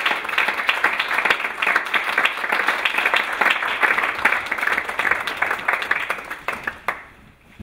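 An audience applauds in a room, then the clapping dies away.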